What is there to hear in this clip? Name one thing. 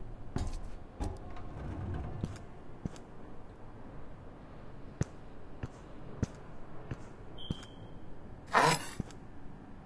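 Footsteps clank on metal steps.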